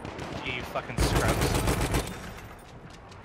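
A heavy machine gun fires in a rapid burst.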